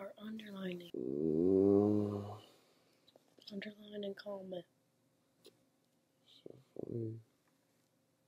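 A young man groans and complains close by.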